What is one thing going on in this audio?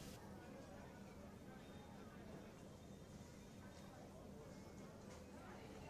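Liquid pours softly into a cup.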